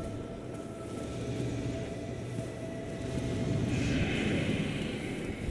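Huge wings flap with deep, heavy whooshes.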